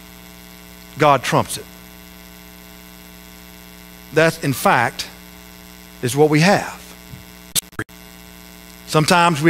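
A man speaks with animation through a microphone in a large echoing room, pausing between phrases.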